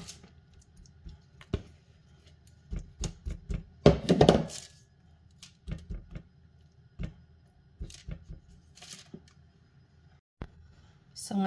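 A spatula scrapes and taps against a baking tray.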